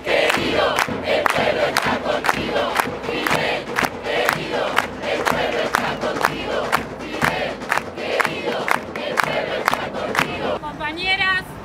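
A large crowd claps in a steady rhythm.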